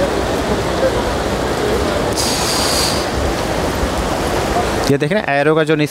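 Fast river water rushes and churns loudly.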